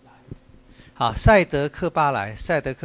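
A man speaks up loudly in an echoing room.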